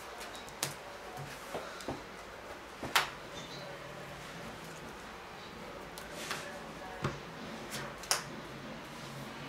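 Cards shuffle and riffle in a player's hands.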